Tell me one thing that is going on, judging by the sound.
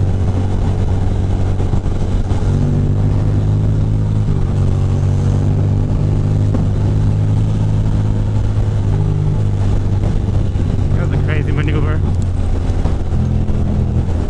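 A motorcycle engine rumbles steadily up close, its pitch shifting as it speeds up and slows.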